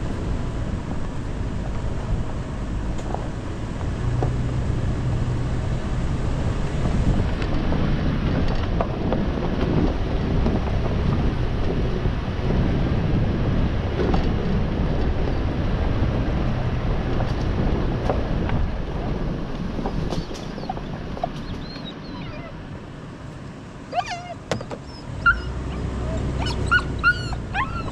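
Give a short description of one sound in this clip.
Rattles and knocks come from the vehicle as it bounces.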